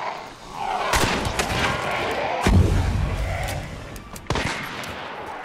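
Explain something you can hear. A revolver fires loud shots.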